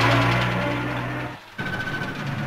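A bus engine rumbles as the bus drives off.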